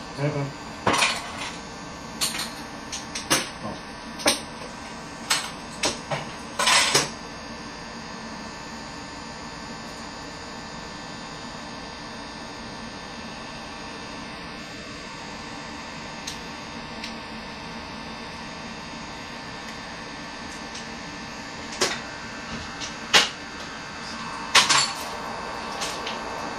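Mahjong tiles clack sharply against each other and the table.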